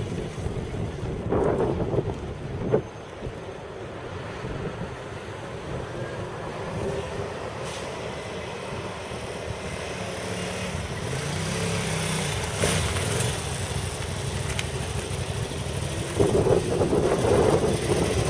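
A motorcycle engine hums as the bike approaches and grows louder.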